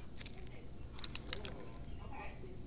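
Pencils rattle in a case.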